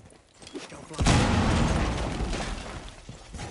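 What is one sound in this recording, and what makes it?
A wall bursts open with a loud, rumbling blast.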